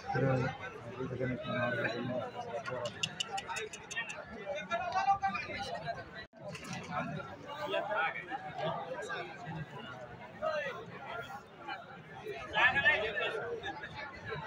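A large outdoor crowd chatters and murmurs nearby.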